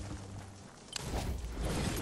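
A gun fires.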